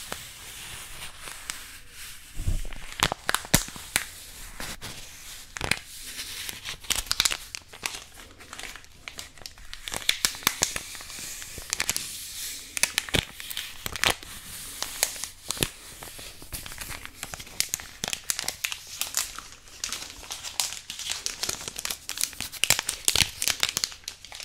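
Paper taps and flicks sharply close to a microphone.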